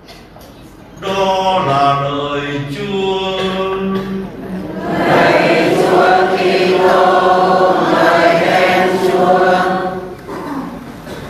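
An elderly man chants through a microphone in an echoing hall.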